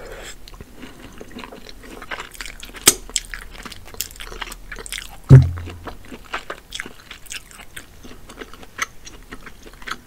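A woman smacks her lips.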